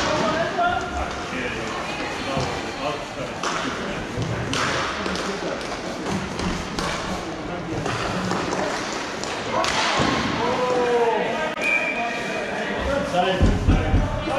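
Hockey sticks clack against a ball.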